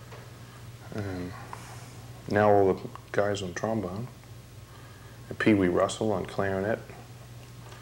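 A man speaks calmly and close up through a microphone.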